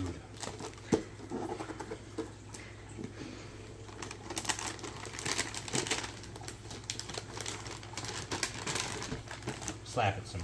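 Wrapping paper crinkles and rustles as it is torn open.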